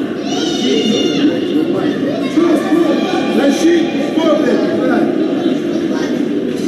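A crowd of spectators chatters and murmurs in a large echoing arena.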